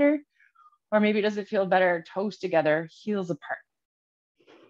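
A woman speaks calmly and softly, close to a microphone.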